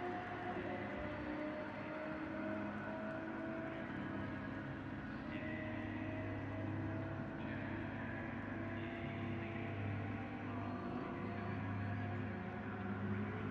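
Race car engines idle with a low, steady hum.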